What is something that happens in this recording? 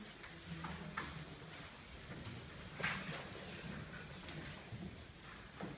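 A mixed choir sings softly together in a large echoing hall.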